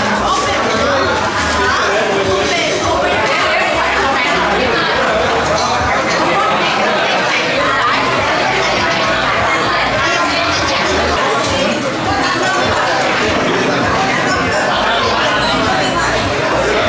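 A crowd of men and women chatter loudly all around, in a busy echoing room.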